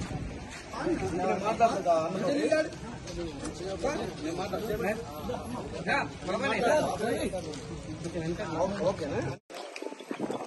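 A crowd of men talk and murmur outdoors.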